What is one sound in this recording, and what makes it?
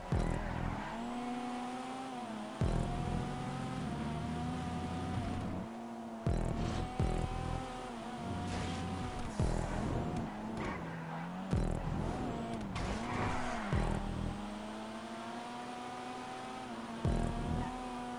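Tyres squeal as a car drifts through corners.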